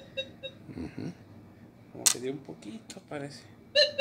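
A small coin drops onto a hard counter with a click.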